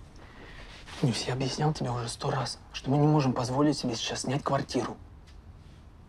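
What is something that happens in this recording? A young man speaks quietly and earnestly, close by.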